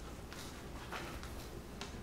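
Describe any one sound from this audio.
A fork taps on a plate.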